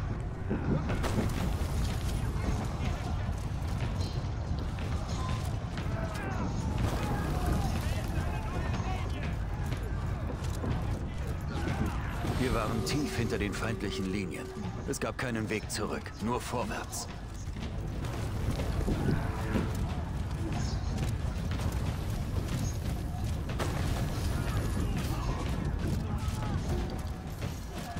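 Soldiers shout in a loud battle.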